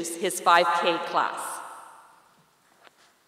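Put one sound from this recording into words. A woman speaks cheerfully into a microphone.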